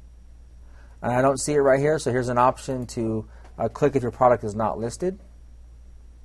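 A middle-aged man speaks nearby.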